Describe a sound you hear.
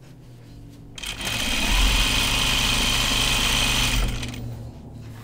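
A sewing machine whirs as it stitches.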